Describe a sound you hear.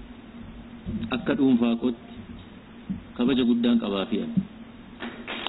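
A man speaks with emphasis into microphones, heard close.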